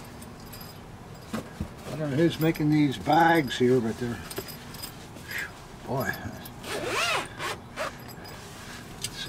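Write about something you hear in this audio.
A leather case rustles and flaps in a man's hands.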